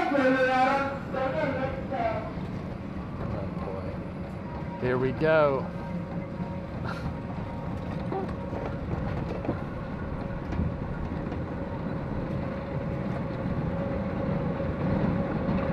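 A roller coaster train rumbles along its track overhead, growing louder.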